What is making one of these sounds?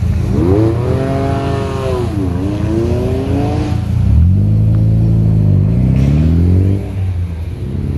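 A sports car engine revs hard, rising and falling in pitch as the car pulls away.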